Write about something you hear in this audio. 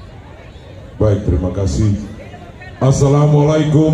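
A man speaks loudly into a microphone through loudspeakers, heard outdoors.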